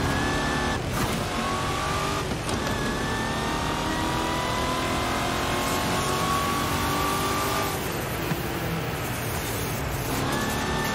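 A race car engine roars loudly, its pitch climbing and dropping as it shifts gears.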